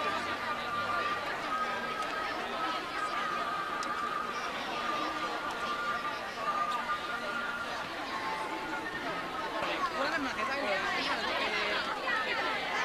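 A crowd chatters steadily outdoors.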